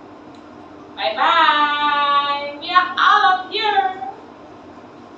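A young woman exclaims loudly and with animation close by.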